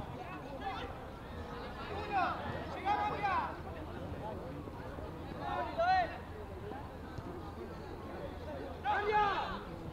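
Young players shout to each other across an outdoor field.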